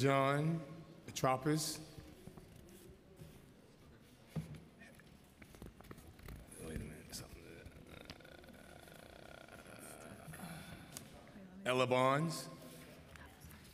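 People murmur quietly in the background.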